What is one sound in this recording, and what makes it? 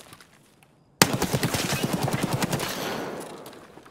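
A rifle fires in rapid bursts, echoing loudly.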